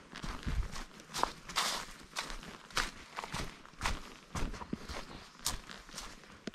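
Footsteps crunch on dry leaves along a forest trail.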